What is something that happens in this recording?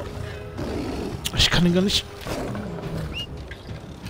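A big cat snarls close by.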